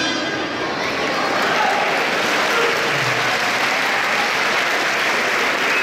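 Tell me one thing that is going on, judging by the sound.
An audience claps and cheers in a large echoing hall.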